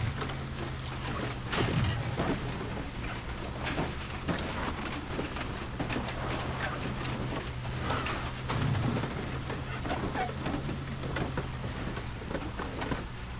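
A small car engine hums steadily as the car drives over rough ground.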